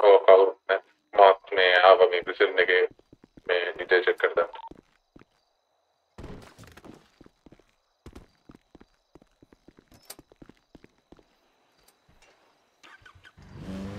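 Footsteps hurry across a hard floor and down stairs.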